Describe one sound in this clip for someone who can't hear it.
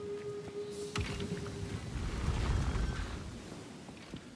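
A heavy stone mechanism rumbles and grinds.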